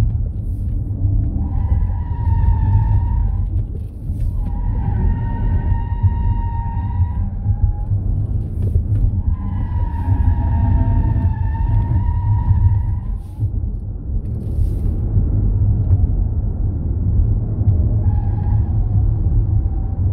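A car engine roars loudly and steadily close by.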